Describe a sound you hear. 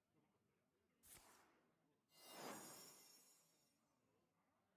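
A magical whoosh and shimmer sweeps up.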